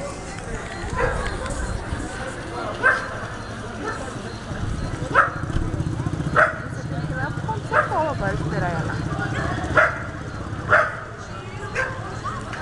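Loud sharp shouts ring out from the crowd now and then.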